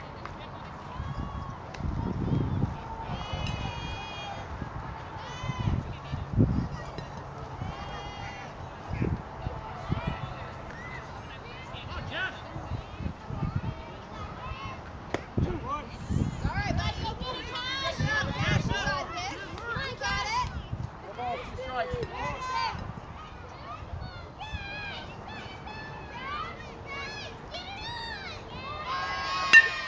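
Children and adults call out and cheer across an open outdoor field.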